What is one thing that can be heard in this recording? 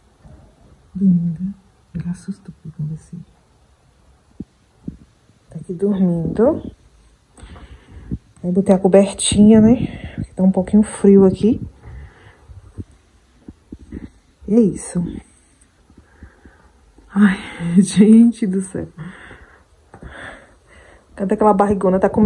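A young woman talks softly and with animation close by.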